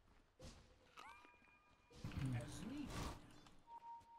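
Game spell effects chime and whoosh.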